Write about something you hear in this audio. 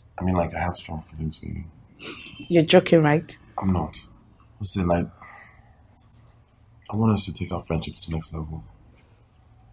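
A young man speaks softly and earnestly up close.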